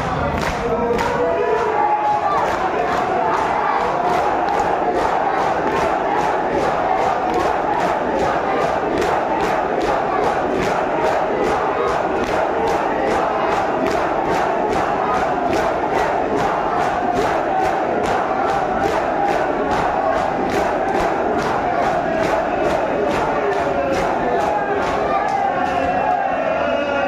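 A large crowd of men beats their chests in a fast, steady rhythm.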